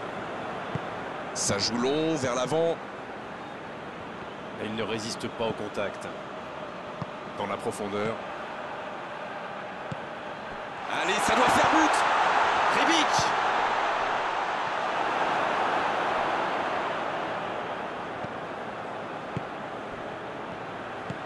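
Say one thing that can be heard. A large stadium crowd murmurs steadily and swells into a roar.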